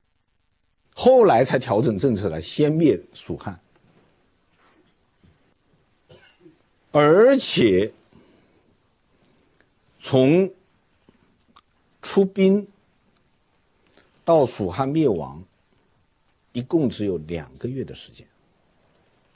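A middle-aged man lectures expressively into a microphone, speaking in short bursts with pauses.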